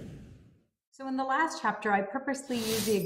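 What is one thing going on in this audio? A woman speaks warmly into a microphone, as on an online call.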